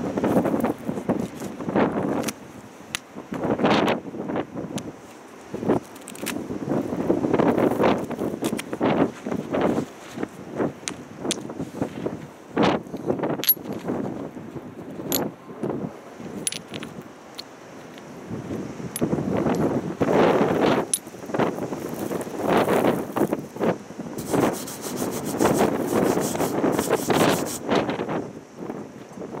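Ceramic tiles clink and tap as they are stacked and set in place.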